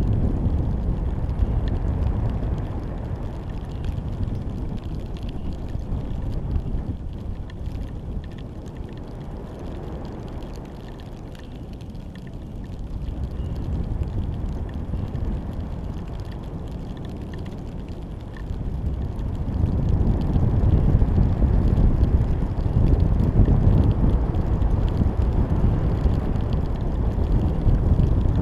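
Wind rumbles and buffets against the microphone, growing stronger toward the end.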